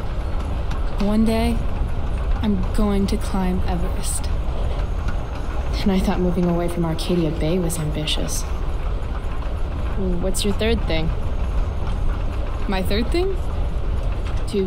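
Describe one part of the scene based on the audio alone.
A young woman speaks calmly and softly.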